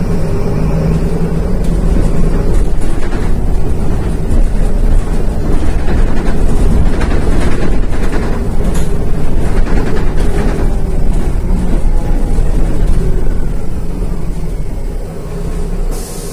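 A bus engine rumbles loudly as the bus drives along.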